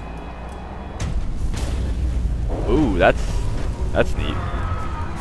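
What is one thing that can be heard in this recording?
Power cuts out with a deep low rumble.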